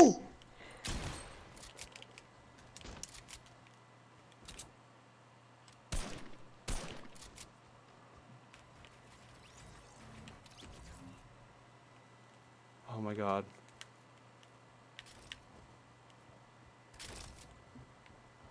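Gunshots fire in sharp bursts.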